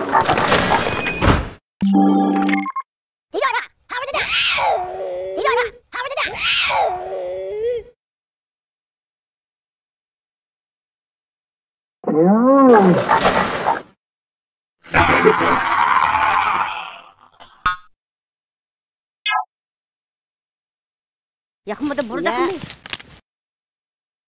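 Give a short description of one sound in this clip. Short game sound effects play in bursts, with silent gaps between them.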